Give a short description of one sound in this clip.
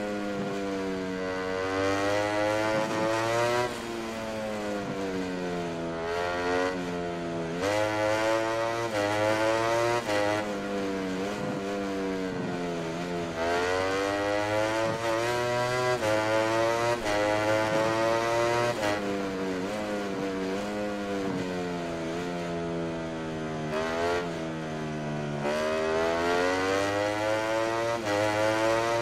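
A motorcycle engine roars close by, its pitch rising and falling as it speeds up and slows for bends.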